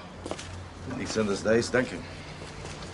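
Another man answers calmly close by.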